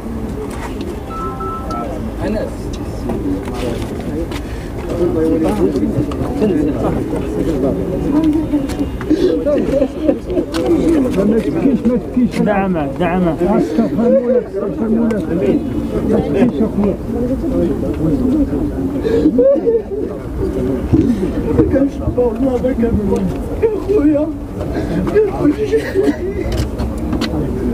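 A crowd of men murmurs and prays aloud close by.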